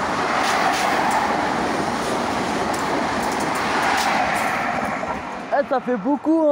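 A train rushes past close by with a loud rushing roar.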